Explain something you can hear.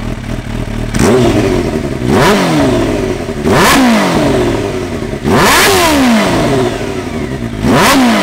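A motorcycle engine revs sharply several times and drops back.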